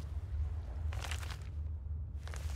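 A book's pages rustle as it opens.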